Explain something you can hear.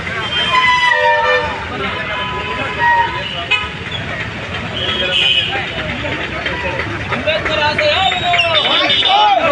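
A crowd of men talks and chatters outdoors.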